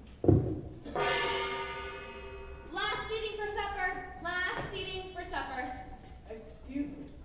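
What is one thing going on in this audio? A young woman sings in a large hall.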